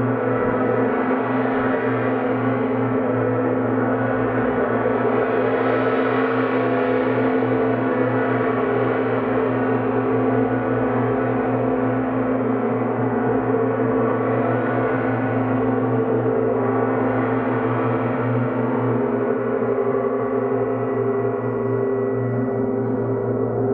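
A large gong hums and swells with a deep, steady roar.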